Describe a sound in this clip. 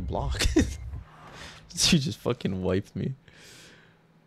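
A young man laughs and talks loudly, close to a microphone.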